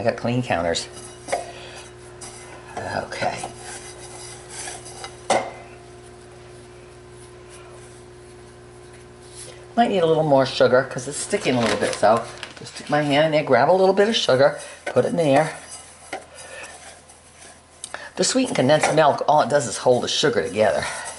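Hands knead soft dough in a bowl with quiet patting sounds.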